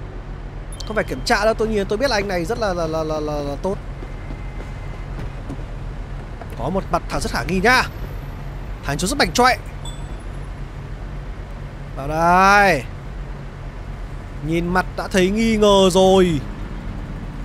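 A man speaks calmly in short lines of recorded dialogue.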